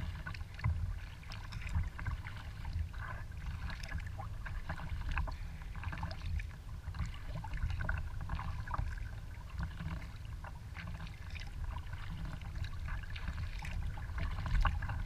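Small waves splash and lap against the hull of a kayak.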